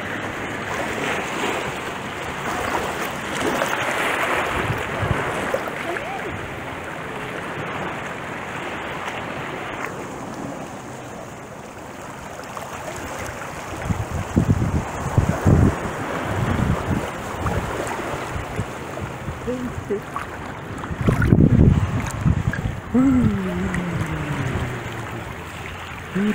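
Shallow water laps gently over stones.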